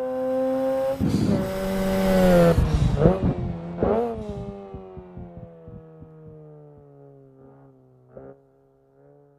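A car's exhaust pops and crackles as the engine lets off.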